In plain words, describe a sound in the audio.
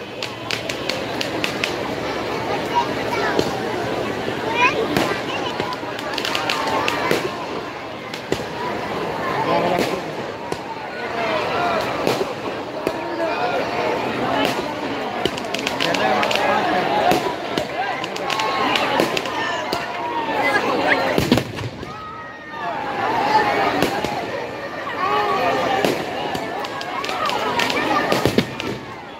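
Fireworks crackle and bang repeatedly.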